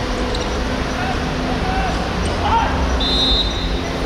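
Young men call out to each other across an open pitch.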